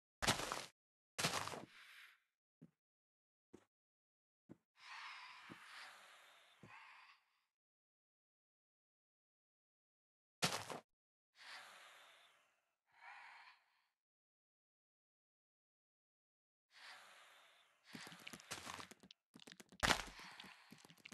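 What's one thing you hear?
Grass blocks break with crunchy video game sound effects.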